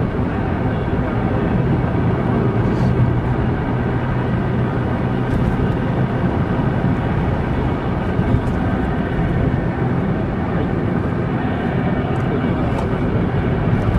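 Tyres roll steadily on a paved road.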